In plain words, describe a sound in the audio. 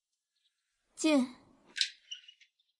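A young woman cries out in alarm, her voice falling in pitch.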